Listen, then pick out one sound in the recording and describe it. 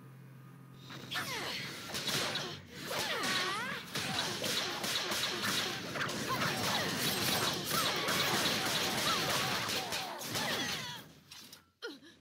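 Magic spells crackle and burst loudly in quick succession.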